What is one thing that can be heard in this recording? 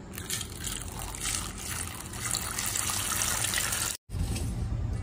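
Water from a tap splashes into a metal bowl.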